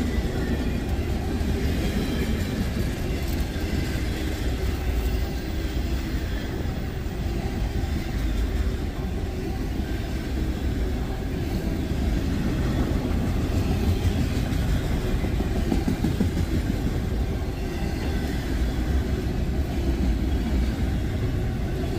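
Train wheels squeal and clack on the rails.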